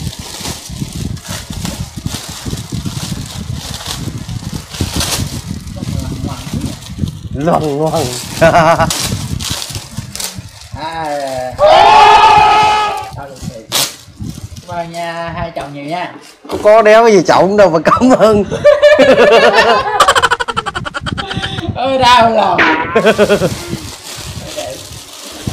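Plastic wrapping crinkles and rustles as it is torn open.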